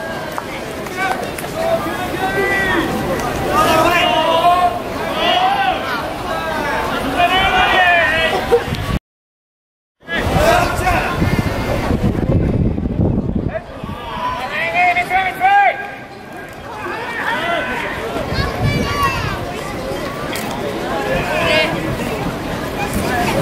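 A crowd chants and cheers loudly in an open stadium.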